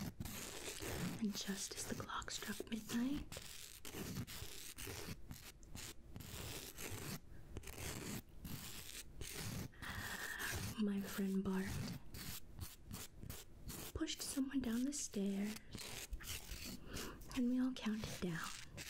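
A middle-aged woman speaks softly and slowly, close to a microphone.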